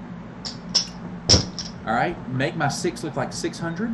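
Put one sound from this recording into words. Casino chips clack together as they are set down.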